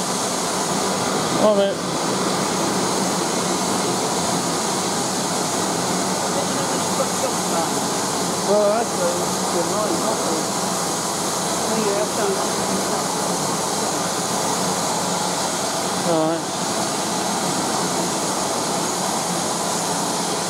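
A crowd of people murmurs in the distance.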